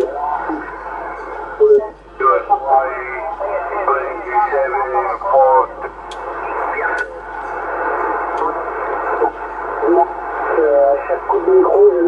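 A tuning knob clicks as it turns.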